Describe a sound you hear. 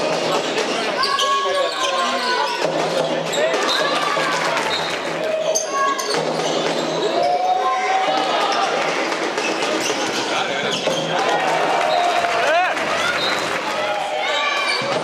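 Sneakers squeak sharply on a hard indoor floor.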